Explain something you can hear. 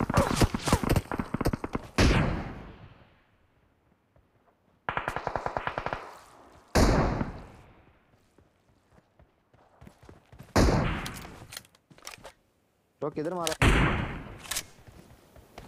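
Rapid gunshots crack and echo across open ground.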